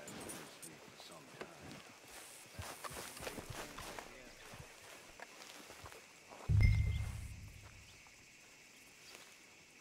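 Footsteps crunch on dry dirt and grass.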